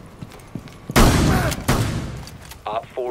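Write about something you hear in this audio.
A gun fires a burst of loud shots.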